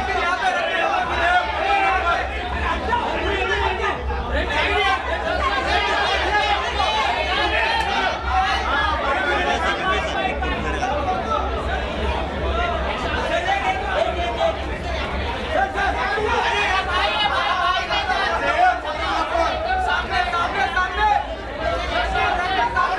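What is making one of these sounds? A crowd of men talk and call out loudly close by.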